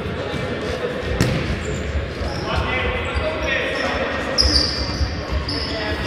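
Sports shoes squeak on a hard hall floor.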